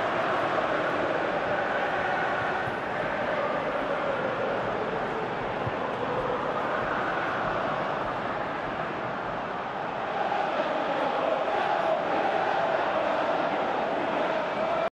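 A large crowd roars steadily in a stadium, swelling louder toward the end.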